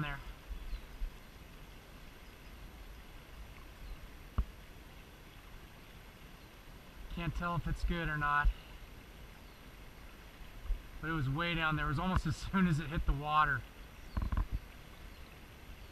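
A river flows and ripples steadily nearby.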